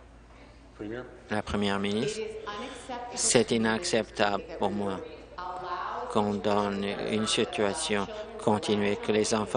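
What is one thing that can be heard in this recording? A middle-aged woman speaks with animation through a microphone.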